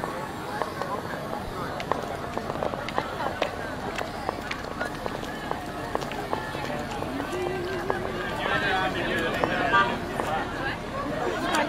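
A crowd of people chatters outdoors nearby.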